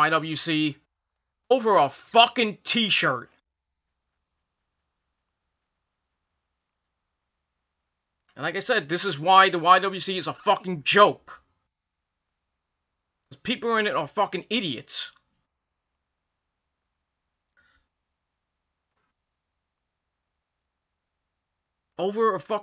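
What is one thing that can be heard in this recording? A middle-aged man talks calmly close to a microphone, in short bursts with long pauses.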